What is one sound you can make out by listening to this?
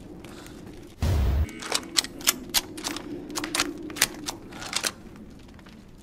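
A rifle's metal parts click and clack as it is handled.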